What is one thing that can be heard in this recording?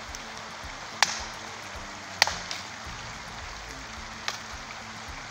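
A stick knocks sharply against a tree trunk.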